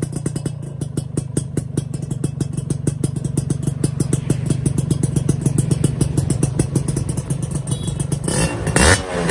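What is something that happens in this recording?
A motorcycle engine idles close by with a fast, throbbing exhaust rumble.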